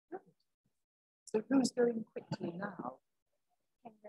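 An elderly woman speaks calmly.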